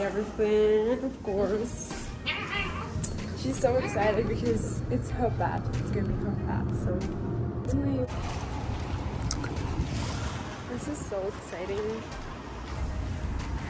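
A teenage girl talks excitedly close to the microphone.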